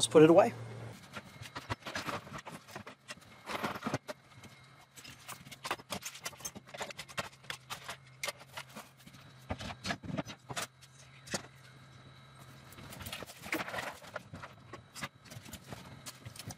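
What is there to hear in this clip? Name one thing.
Tools and cases knock and clatter on shelves.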